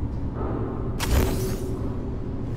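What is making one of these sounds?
A pistol fires a single loud shot with a short echo.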